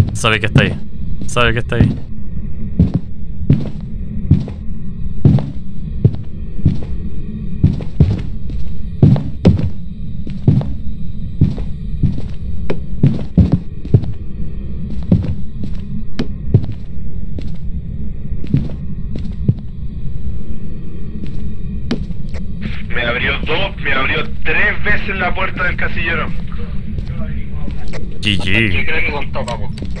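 Footsteps thud steadily on a hard floor.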